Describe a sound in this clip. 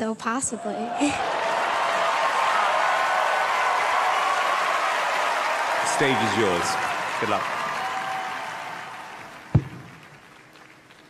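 A large crowd cheers and applauds in a big hall.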